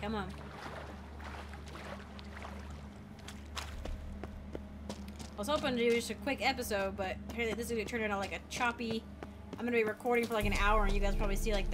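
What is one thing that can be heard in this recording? Footsteps tread on rough ground.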